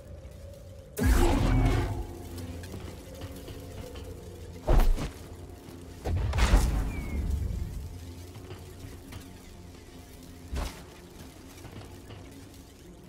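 A lightsaber hums and swooshes as it is swung.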